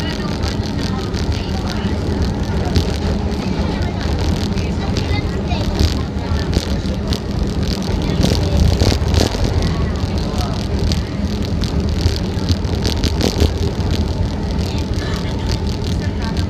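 A train rumbles steadily along the tracks, its wheels clattering over the rail joints.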